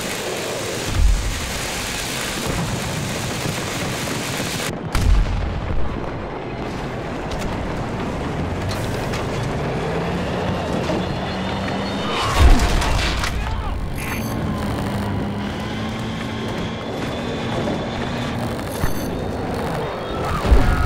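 Explosions boom with deep thuds.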